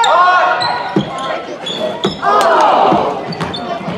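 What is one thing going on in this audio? A basketball bounces on the hardwood floor.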